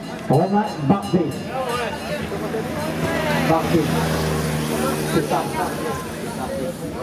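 A motorcycle engine approaches and roars past.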